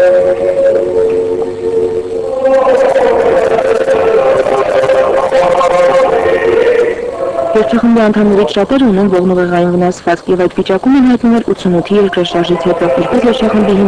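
A mixed choir of men and women sings together in a large echoing hall.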